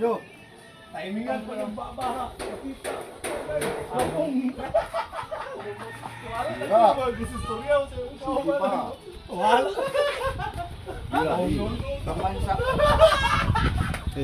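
Men talk and chat casually nearby.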